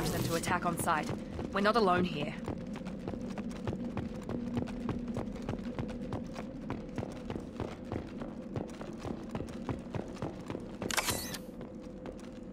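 Heavy footsteps clank steadily on a metal floor.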